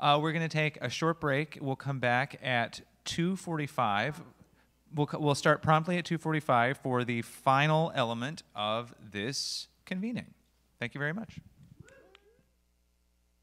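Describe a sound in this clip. A man speaks calmly into a microphone, heard through loudspeakers.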